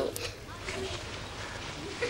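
A woman speaks with feeling.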